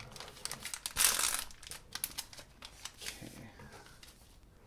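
A plastic wrapper crinkles and rustles in hands.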